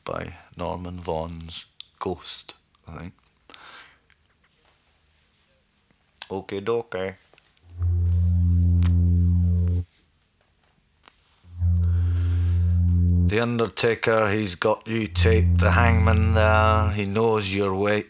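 A man speaks slowly and deliberately, close up.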